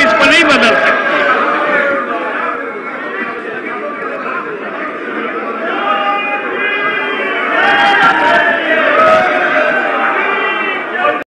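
Many voices shout and chatter together in a large hall.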